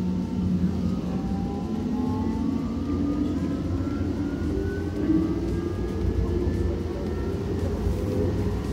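A train's motor whines, rising in pitch as it speeds up.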